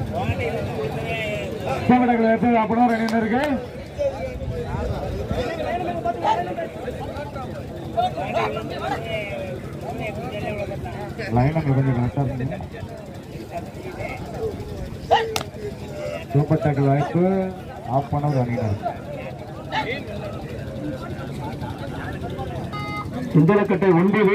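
A man commentates excitedly over a loudspeaker.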